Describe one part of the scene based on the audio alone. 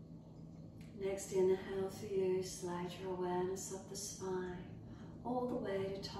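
A woman speaks calmly and softly close to a microphone.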